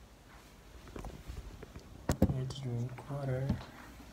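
A plastic bottle thumps down on a table.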